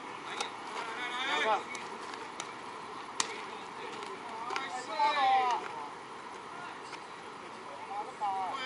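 Men call out loudly across an open field.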